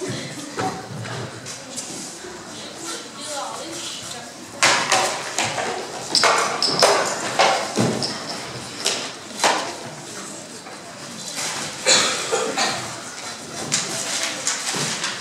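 Footsteps thud and shuffle on a wooden stage.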